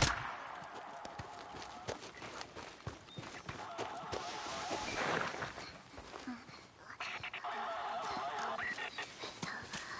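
Footsteps rustle through dry grass and brush.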